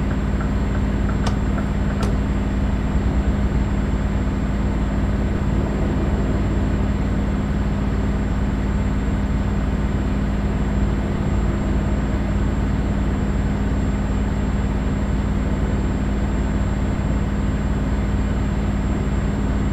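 Tyres roll on a highway with a steady road noise.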